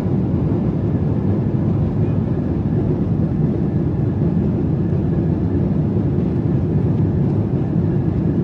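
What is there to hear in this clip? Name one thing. Jet engines roar steadily with a deep rumble of air rushing past, heard from inside an airliner cabin.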